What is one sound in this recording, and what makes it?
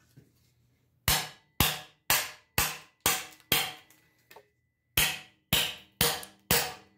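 A hammer strikes a metal chisel in sharp, ringing blows.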